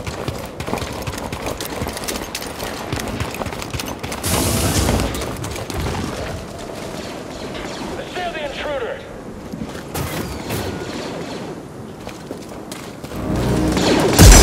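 Footsteps splash and crunch over wet ground.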